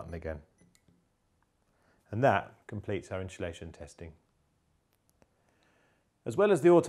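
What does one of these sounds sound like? A man speaks calmly and clearly, close up.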